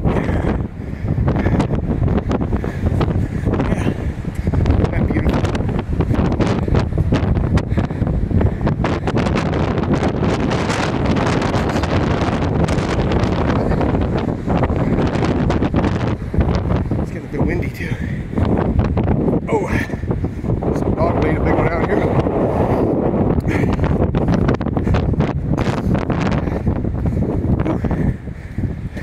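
Strong wind buffets the microphone outdoors.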